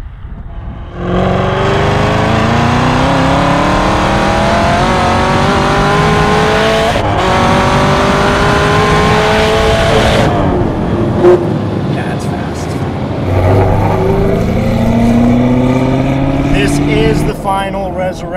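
A powerful car engine roars loudly, rising in pitch as it accelerates through the gears.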